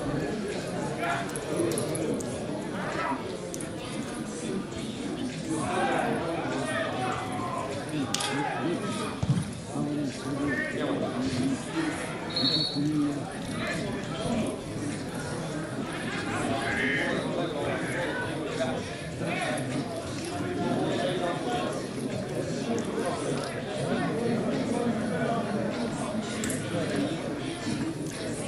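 Spectators chatter nearby outdoors.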